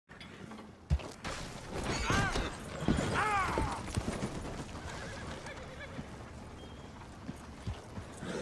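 Horse hooves thud on dirt.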